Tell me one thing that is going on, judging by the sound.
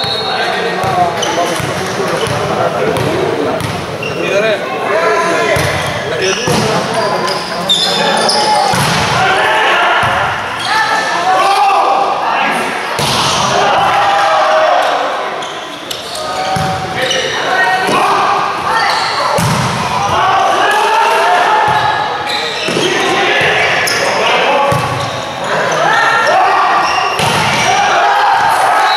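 Young men shout and call to each other across the court.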